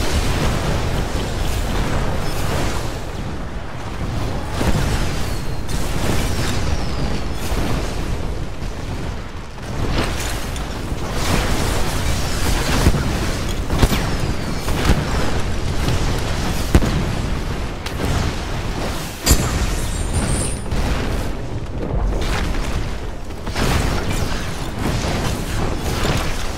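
Video game spells fire and explode with sharp bursts and crackles.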